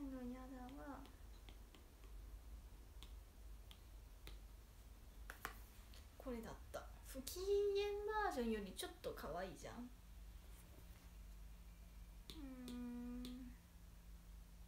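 A young woman speaks softly and close by, in a high, playful voice.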